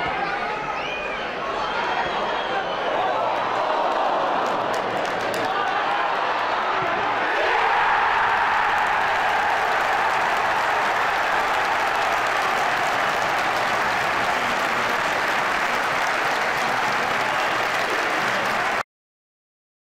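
A large stadium crowd roars and cheers outdoors, swelling louder after a goal.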